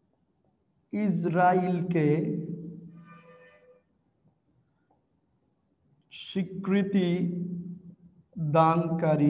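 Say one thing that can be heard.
A young man speaks slowly and clearly, as if teaching.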